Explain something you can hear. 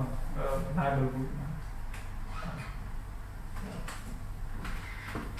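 A man speaks at a distance in a room with some echo.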